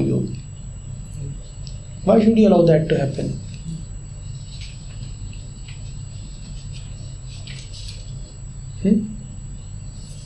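A man speaks calmly in short bursts, close to a microphone.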